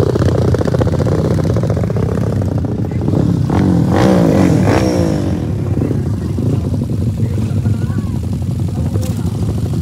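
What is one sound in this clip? Dirt bike engines idle and rev loudly outdoors.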